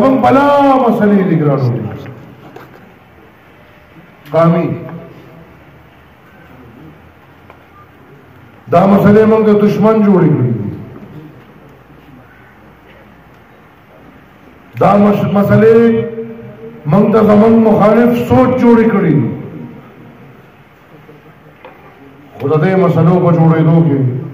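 A man speaks loudly into a microphone over a loudspeaker, in bursts with long pauses, outdoors.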